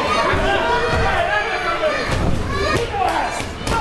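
Wrestlers thud onto a ring canvas.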